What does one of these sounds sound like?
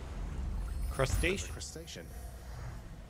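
A video game plays a short fanfare as a fish is caught.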